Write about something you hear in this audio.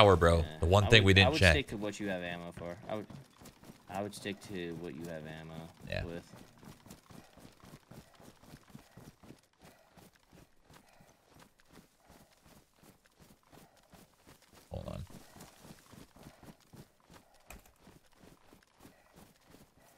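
Footsteps rustle through grass in quick steps.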